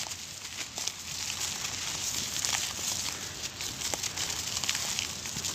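Sand and grit patter and pour down.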